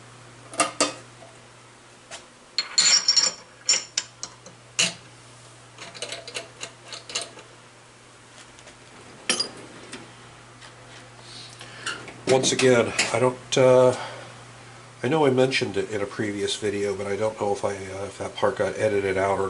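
Small metal parts click and tap together.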